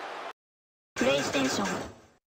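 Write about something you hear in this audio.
A short bright electronic chime plays.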